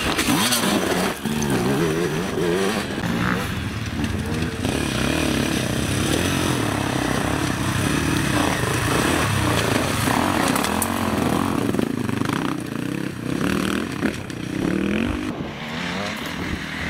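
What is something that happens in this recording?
Motorcycle tyres crunch and scrabble over loose rocks.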